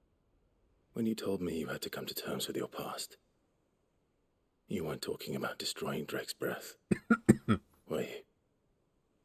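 A young man speaks calmly and questioningly, close by.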